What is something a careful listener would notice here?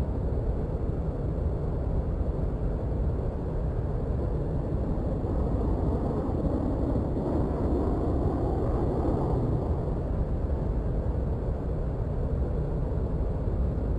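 A jet engine rumbles and roars steadily close by, swelling slightly for a few seconds midway.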